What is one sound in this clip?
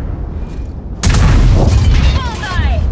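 A heavy tank gun fires with a deep boom.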